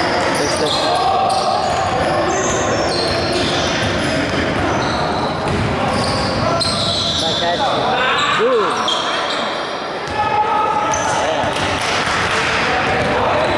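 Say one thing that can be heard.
Sneakers squeak sharply on a wooden court in an echoing gym.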